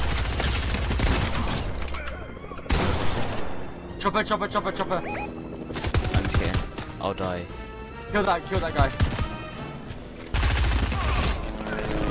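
Gunshots fire.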